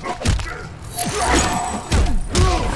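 An icy blast whooshes and crackles.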